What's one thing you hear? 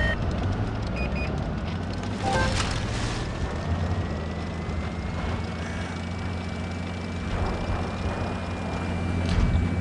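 Tank treads clatter over the ground.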